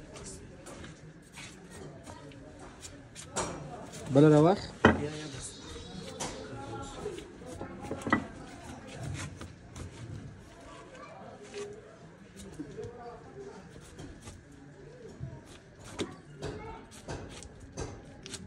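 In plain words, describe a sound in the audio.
A knife slices through hide with soft tearing sounds.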